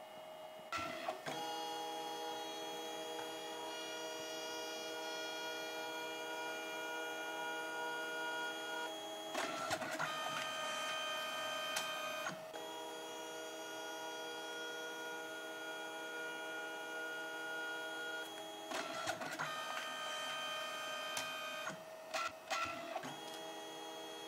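A printer's paper feed clicks and clunks as the sheet moves back and forth.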